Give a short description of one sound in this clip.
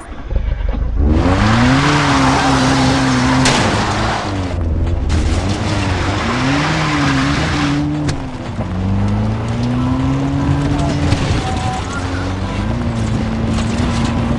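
A car engine starts and revs up and down as the car drives along.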